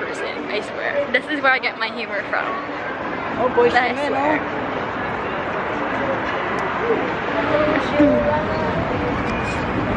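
Steady city traffic and street noise hum outdoors.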